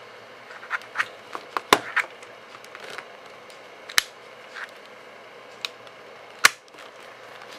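Plastic clicks and taps sharply as fingers press on a device.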